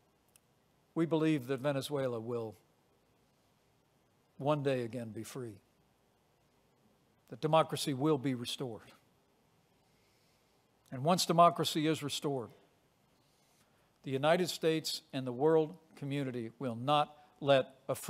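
A middle-aged man speaks slowly and firmly into a microphone, with long pauses.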